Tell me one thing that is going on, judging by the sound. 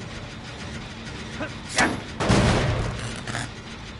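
A generator engine rattles and clanks nearby.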